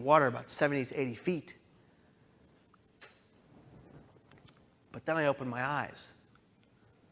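A man speaks expressively through a microphone in a large hall, pausing between phrases.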